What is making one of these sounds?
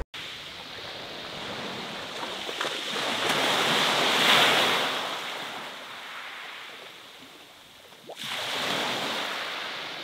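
Pebbles rattle as the surf draws back.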